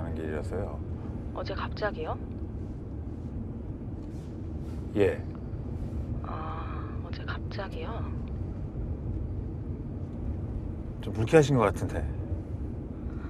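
A man talks calmly in a low voice, close by.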